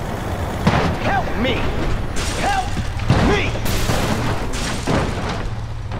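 Cars crash with loud metal crunches.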